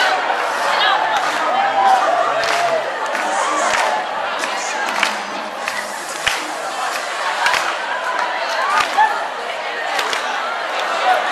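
A crowd of children and adults chatters and shouts loudly in a large echoing hall.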